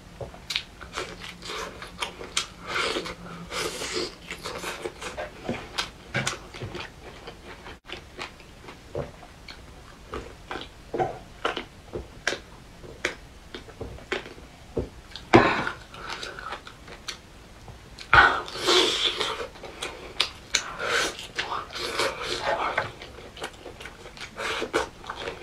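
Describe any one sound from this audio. A young woman chews and smacks her lips loudly close to a microphone.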